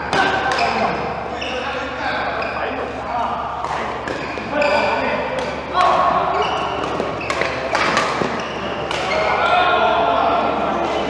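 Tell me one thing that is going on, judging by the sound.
Shoes squeak on a hard floor in a large echoing hall.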